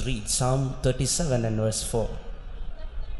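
A man preaches with animation into a microphone.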